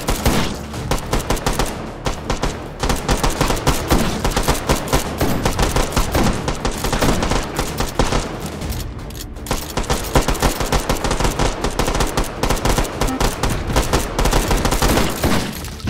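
A shotgun fires loud blasts.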